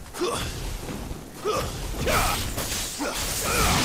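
Blades clash and slash in quick strikes.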